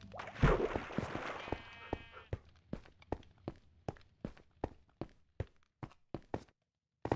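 Footsteps tap on stone at a steady walking pace.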